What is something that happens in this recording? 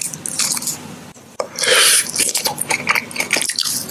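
A man bites into a frozen ice pop with a crunch.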